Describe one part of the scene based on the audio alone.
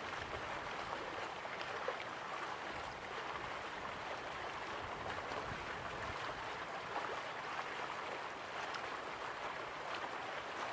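Waterfalls rush steadily in the distance.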